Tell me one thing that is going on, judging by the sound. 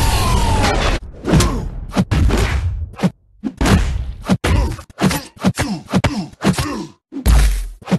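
Game punches and impacts thud in quick succession.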